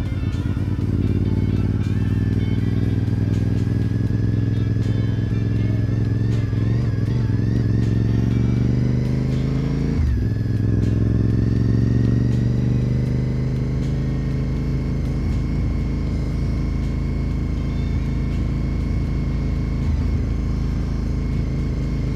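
A motorcycle engine hums steadily, rising in pitch as it speeds up.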